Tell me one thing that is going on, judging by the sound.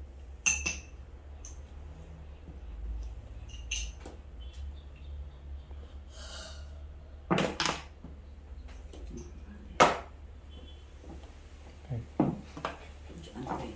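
Mahjong tiles click and clack against each other on a table.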